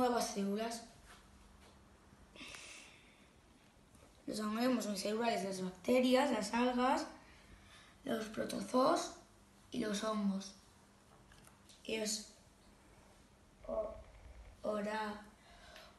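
A boy talks calmly, close by.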